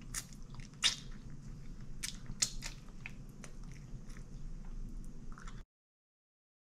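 A woman smacks her lips and licks her fingers.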